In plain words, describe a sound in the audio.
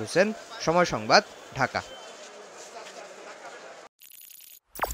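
A crowd murmurs and shuffles outdoors.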